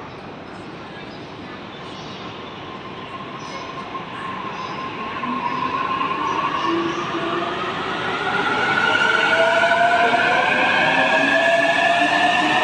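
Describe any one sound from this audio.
Train wheels rumble and clatter over the rails, growing louder.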